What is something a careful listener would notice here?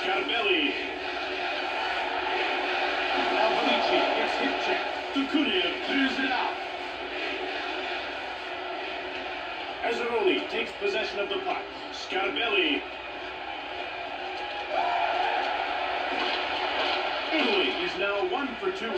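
An arena crowd roars steadily through a small loudspeaker.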